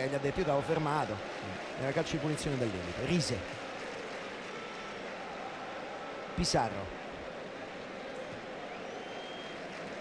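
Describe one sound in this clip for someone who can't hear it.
A large stadium crowd murmurs steadily in the distance.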